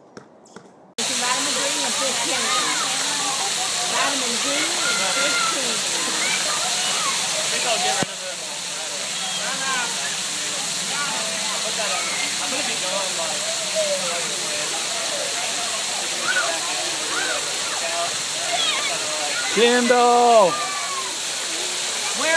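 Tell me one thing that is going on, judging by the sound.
Children and adults talk and call out nearby.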